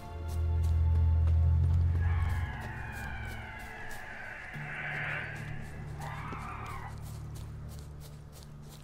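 Footsteps tread steadily through tall grass.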